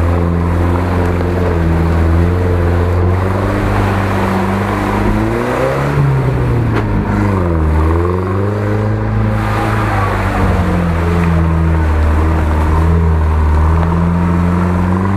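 Tyres churn through mud and slush.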